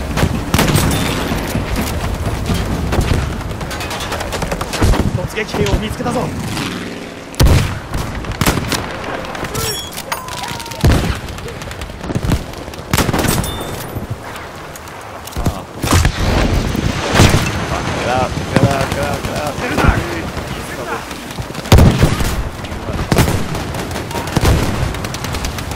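Gunfire rumbles in the distance.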